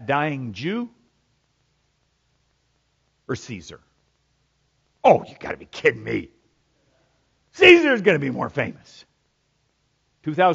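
An older man speaks expressively into a microphone, with long pauses, over loudspeakers in a quiet hall.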